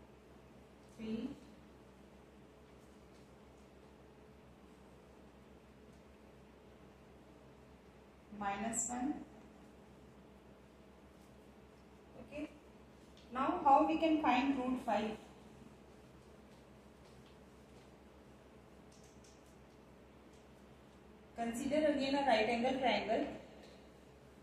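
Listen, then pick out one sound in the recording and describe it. A woman speaks calmly in short bursts, close by.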